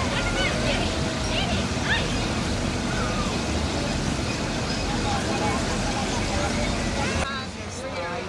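A kiddie ride's cars rumble around on their track.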